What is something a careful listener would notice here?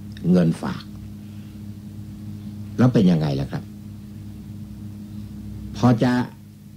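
An elderly man speaks a few short phrases calmly, with pauses between them.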